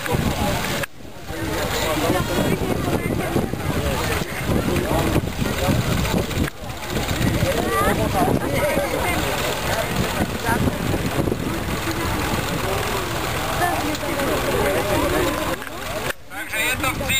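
An outdoor crowd chatters in the background.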